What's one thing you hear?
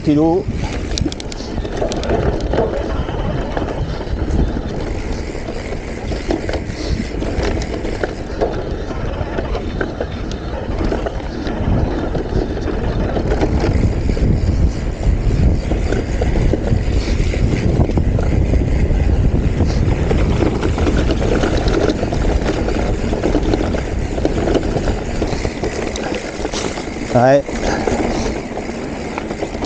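Wind buffets outdoors, rumbling low and steady.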